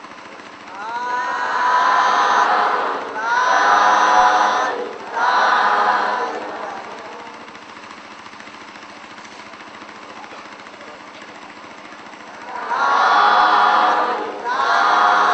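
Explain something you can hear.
A man speaks loudly in drawn-out phrases.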